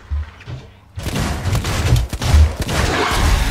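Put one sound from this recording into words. A creature snarls and lunges up close.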